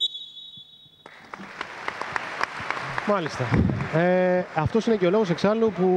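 A crowd in an echoing hall cheers.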